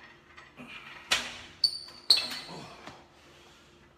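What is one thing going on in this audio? A cable machine clanks as its weights knock together.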